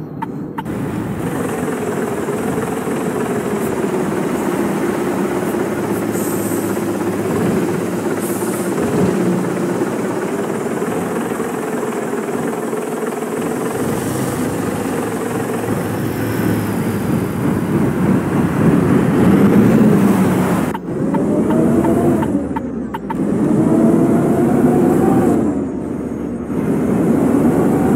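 A bus engine hums steadily and rises in pitch as the bus pulls away.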